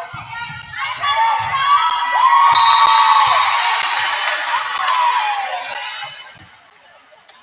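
A crowd cheers and claps in a large echoing gym.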